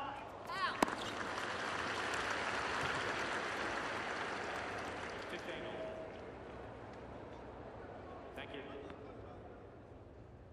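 A crowd cheers and applauds, then slowly fades.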